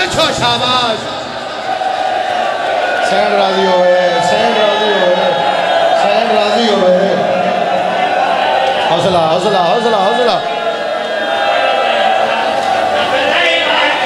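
A crowd of men beat their chests in rhythm.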